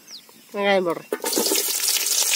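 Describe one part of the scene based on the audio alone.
Onion slices drop into a metal pot.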